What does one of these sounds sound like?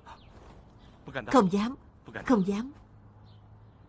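A young woman answers softly.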